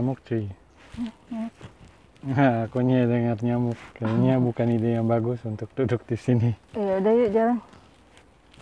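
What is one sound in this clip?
A young woman speaks close up, animated and playful.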